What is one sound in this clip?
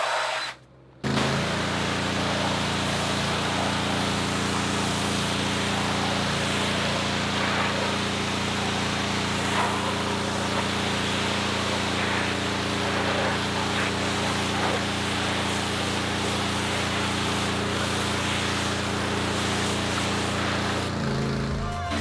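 A jet of water hisses and sprays onto a rubber mat.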